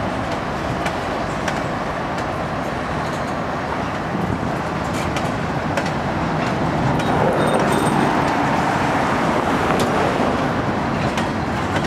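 Freight train boxcars roll past on steel rails with a steady rumble.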